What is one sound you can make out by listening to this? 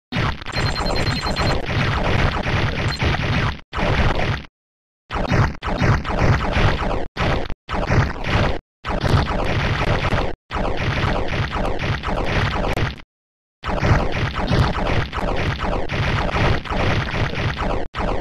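Lightning bolts zap with quick falling sounds.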